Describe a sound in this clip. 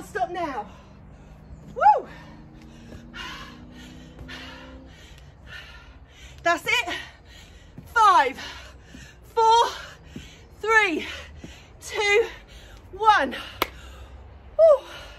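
Feet thud softly on a mat as a woman jumps.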